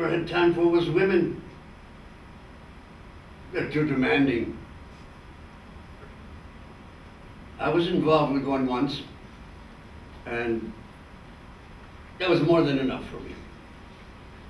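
An elderly man speaks slowly in short phrases, close by.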